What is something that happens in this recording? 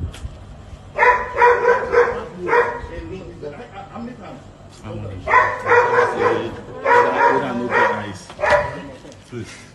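A woman argues loudly with men close by.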